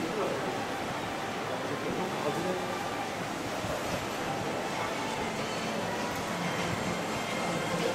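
A crowd murmurs in the distance with a soft echo.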